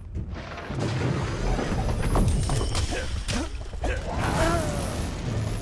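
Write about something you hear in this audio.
A magic spell crackles and zaps.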